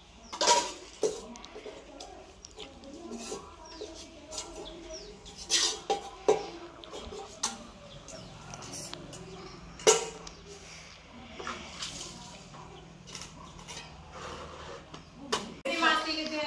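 Metal dishes clatter and clink.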